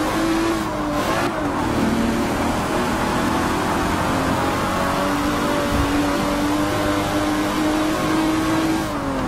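Tyres hum on the track.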